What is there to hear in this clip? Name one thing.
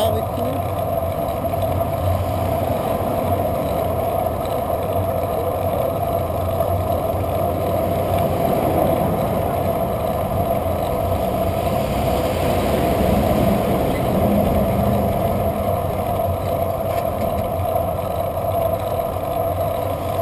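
Wind rushes steadily past a moving bicycle.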